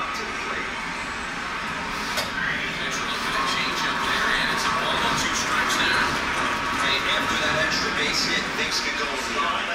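A heavy cabinet scrapes and slides across a wooden floor.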